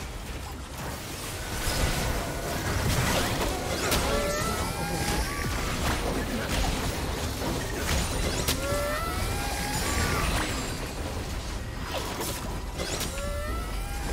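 Game spell effects and attacks crackle and whoosh in quick bursts.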